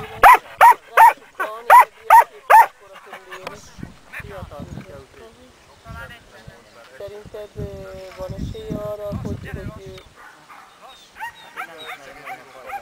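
Sheep bleat repeatedly, loud and close at first, then more scattered.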